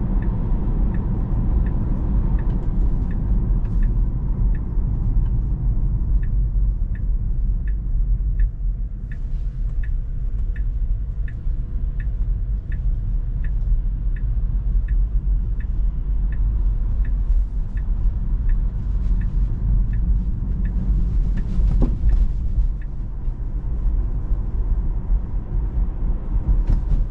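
Tyres hum steadily on the road inside a moving car.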